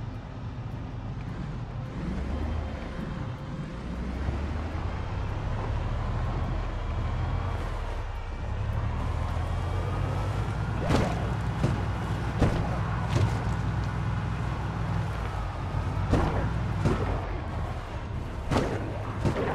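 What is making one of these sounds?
A van engine rumbles low and steady.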